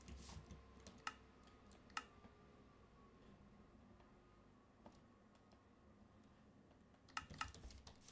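Menu buttons click several times.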